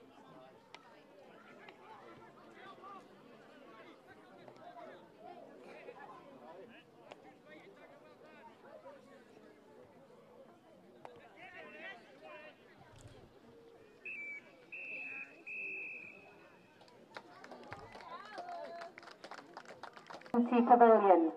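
A crowd of spectators chatters in the distance outdoors.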